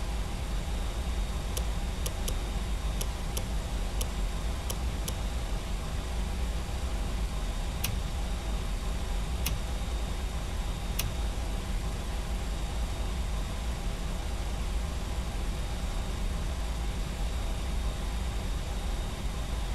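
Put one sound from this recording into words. A low aircraft engine hum drones steadily.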